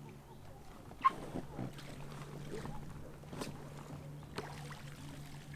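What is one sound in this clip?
An inflatable boat rustles and creaks as a man climbs in.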